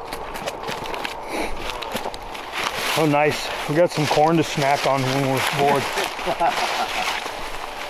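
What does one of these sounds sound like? Dry corn stalks crunch and rustle underfoot.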